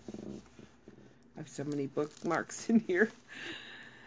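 Paper pages rustle as a book is handled.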